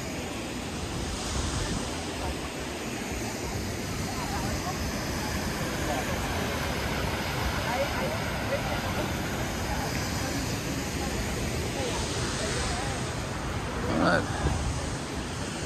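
Men and women chat at a distance outdoors.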